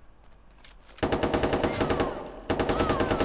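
A gun fires in a rapid burst of shots.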